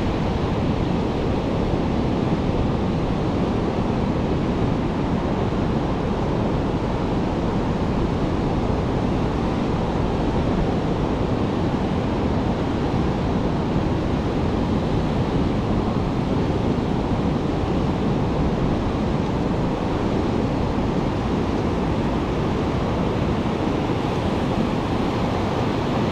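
Wind blows steadily, rumbling outdoors.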